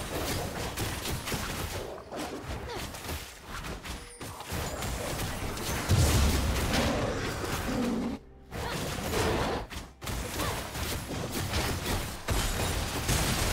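Magic spells whoosh and crackle in a fast fight.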